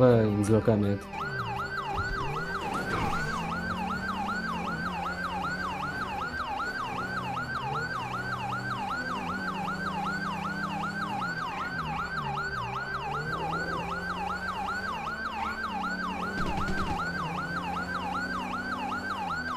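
A police siren yelps rapidly and steadily.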